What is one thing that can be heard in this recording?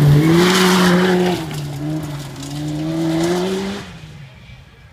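Gravel sprays from a car's tyres.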